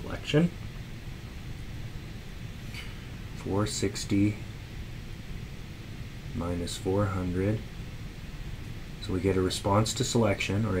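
A man explains calmly through a close microphone, in short phrases with pauses.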